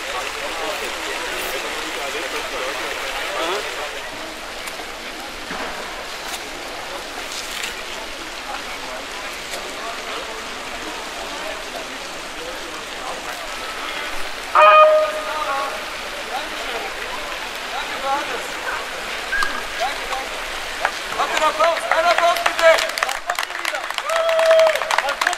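A crowd of people murmurs and talks outdoors.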